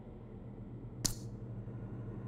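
A short menu click sounds once.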